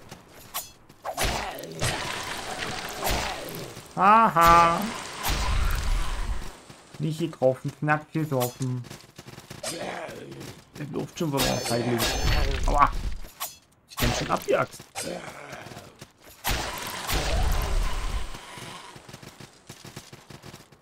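A sword swings and slashes repeatedly.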